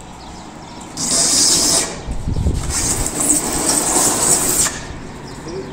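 A cardboard box scrapes as it is pushed across a tiled floor.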